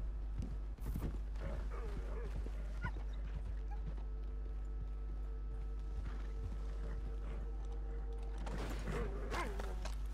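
A horse's hooves thud at a gallop over the ground.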